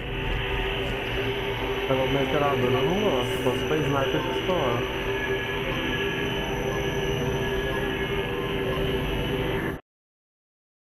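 A deep electronic hum drones steadily, then cuts off abruptly.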